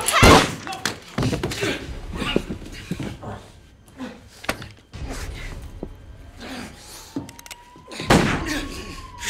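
Bodies thud and scuffle in a close struggle.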